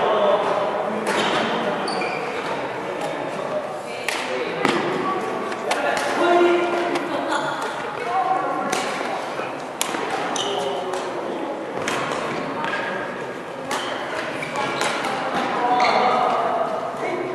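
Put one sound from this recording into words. The hall sounds large and echoing.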